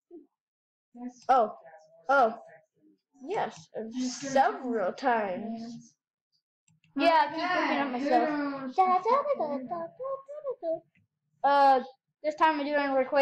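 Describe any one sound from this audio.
A child talks with animation close to a microphone.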